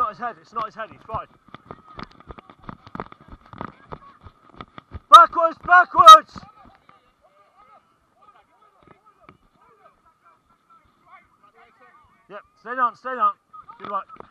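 Young men shout loudly to each other outdoors.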